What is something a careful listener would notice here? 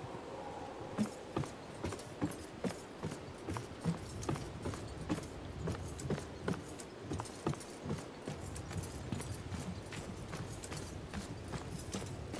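Footsteps thud steadily on wooden boards and then on hard ground.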